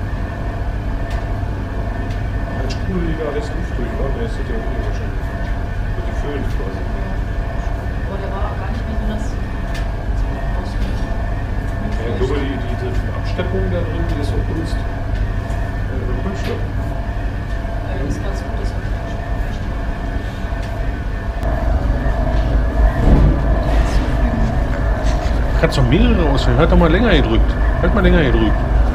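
Washing machines hum and rumble steadily.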